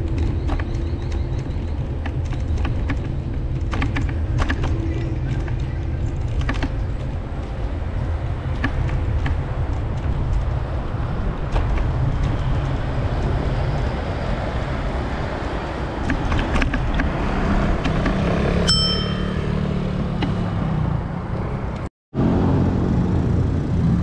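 Wind rumbles steadily while moving along a street.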